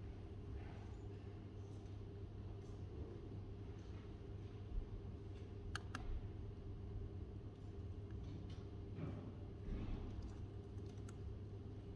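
Fingers tap on a laptop keyboard with soft clicks.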